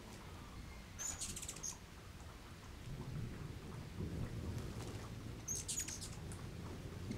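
Small birds chirp in sharp, quick bursts.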